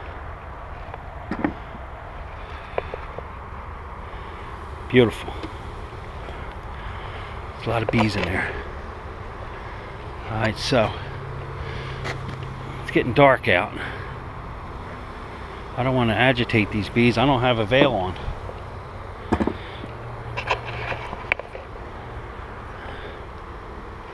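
Honeybees buzz around an open hive.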